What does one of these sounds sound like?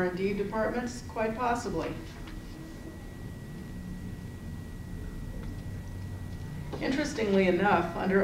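A middle-aged woman speaks calmly into a microphone, pausing for a while.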